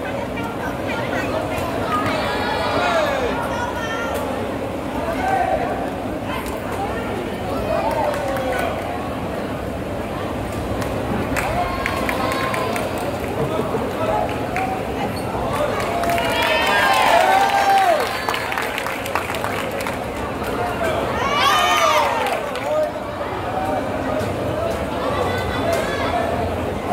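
A crowd murmurs and cheers in a large echoing hall.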